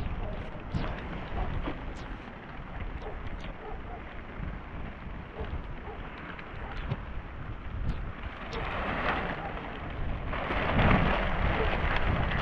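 Wind blows outdoors, rumbling low.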